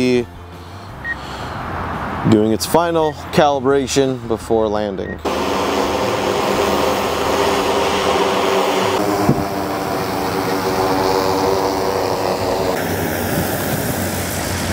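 A drone's propellers buzz and whine steadily overhead.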